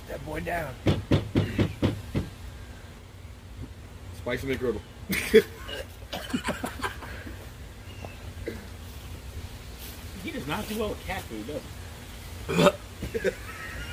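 A young man talks casually close by, outdoors.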